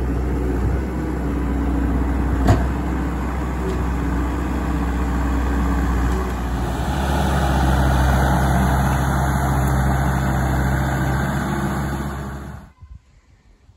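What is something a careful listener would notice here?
A diesel engine rumbles loudly and steadily nearby.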